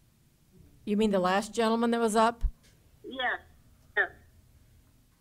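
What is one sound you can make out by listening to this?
A woman speaks over an online call.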